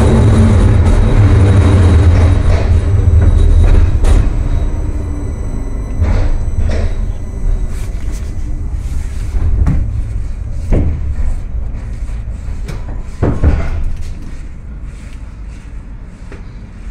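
A tram rumbles along steel rails, slowing down.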